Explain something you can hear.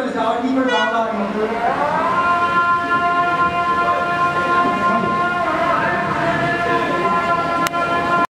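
A man chants in a long, drawn-out voice through a microphone and loudspeakers.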